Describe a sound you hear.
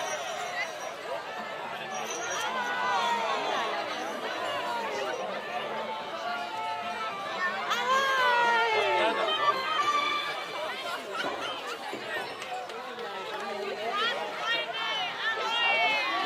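Many young children chatter and shout excitedly nearby.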